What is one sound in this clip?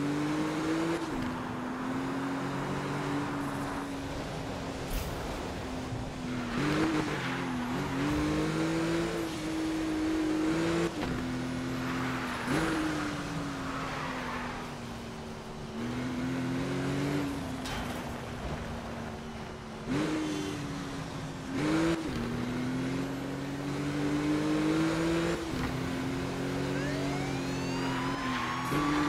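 A sports car engine roars steadily, rising and falling in pitch as the car speeds and shifts gears.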